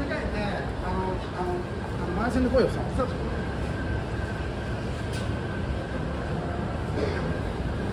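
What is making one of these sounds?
Footsteps of many people walking on paving echo under a roof.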